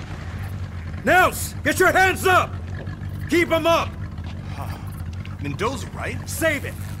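A man speaks up close in a raised, tense voice.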